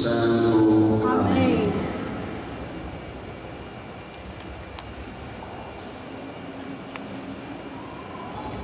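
A man speaks calmly through a microphone and loudspeakers in a large echoing hall.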